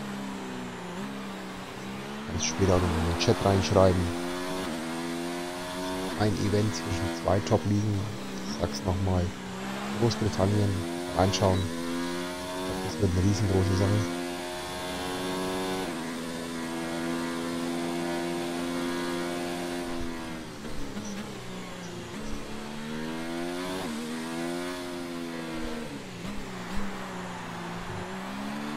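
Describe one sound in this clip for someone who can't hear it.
A racing car engine whines loudly, rising and falling in pitch as the car speeds up and slows down.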